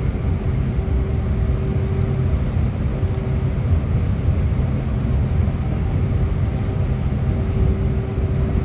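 Tyres roar on the road, echoing in a tunnel.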